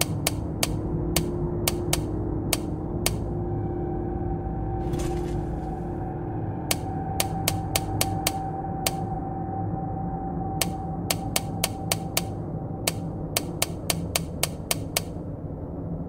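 A safe's combination dial clicks as it turns.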